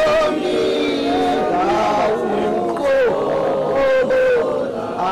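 A crowd of men and women sings together in chorus.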